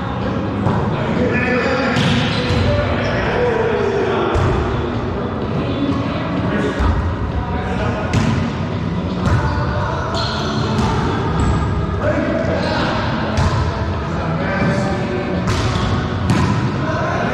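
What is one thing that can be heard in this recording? Men call out to each other as they play, echoing loudly.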